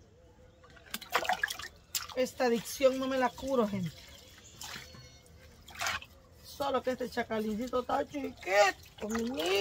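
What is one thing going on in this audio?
Water pours and splashes from a bowl.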